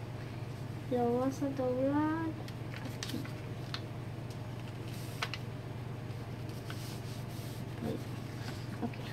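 Paper rustles and crinkles as hands fold it.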